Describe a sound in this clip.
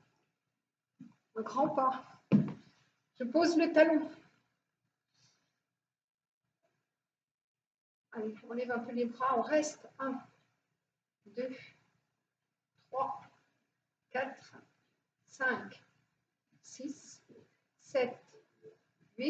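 A woman speaks calmly and clearly, instructing, in a large echoing hall.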